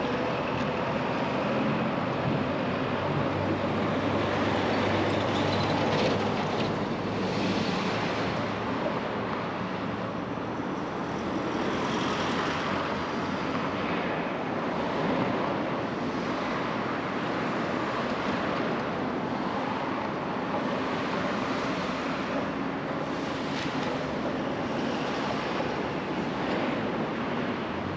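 Road traffic rumbles steadily nearby outdoors.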